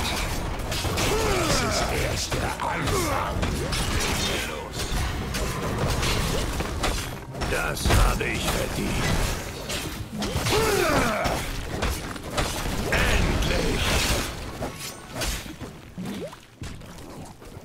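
Game battle effects crackle, zap and thud in a dense clash.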